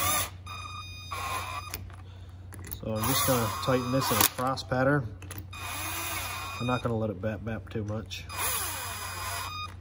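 A cordless drill whirs in short bursts, its pitch rising and falling.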